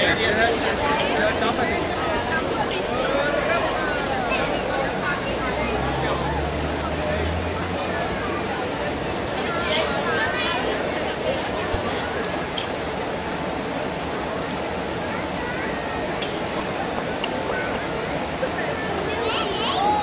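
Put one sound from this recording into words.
Water rushes steadily over a weir.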